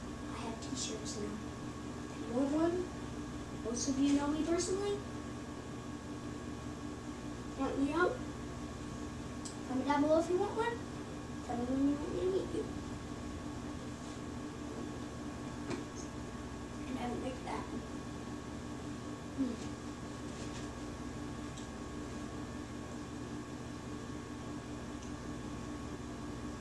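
A video game's sounds play quietly from a television.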